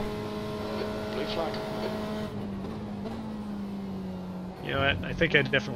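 A racing car engine drones steadily and drops in pitch as gears shift down.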